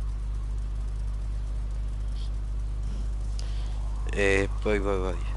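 A vehicle engine idles with a low, steady rumble.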